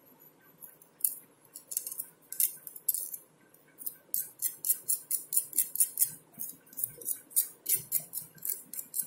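A small metal blade scrapes quickly against a metal part in short rapid strokes.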